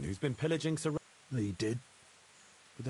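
A man speaks calmly in a low voice, close by.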